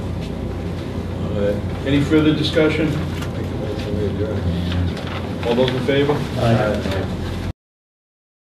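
A man speaks calmly at a slight distance.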